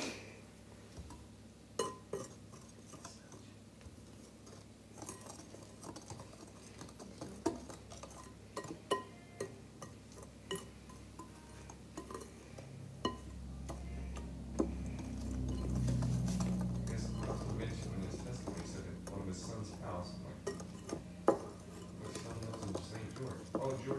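A tool scrapes and clicks against a glass bowl, close by.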